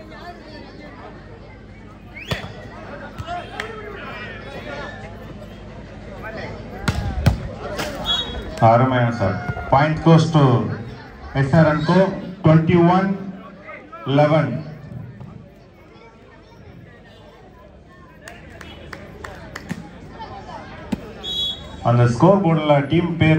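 A crowd of spectators murmurs and cheers outdoors.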